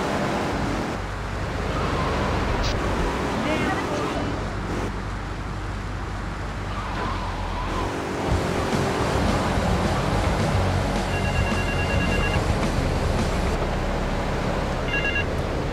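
A sports car engine roars at speed.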